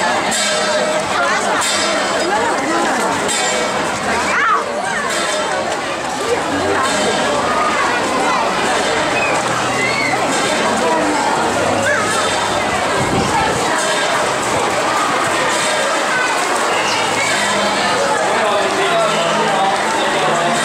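Many footsteps shuffle along a hard floor.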